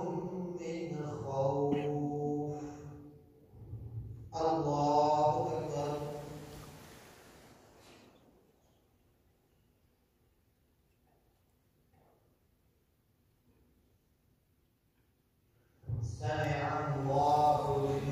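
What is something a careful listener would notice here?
A man chants a prayer loudly through a loudspeaker, echoing in a large hall.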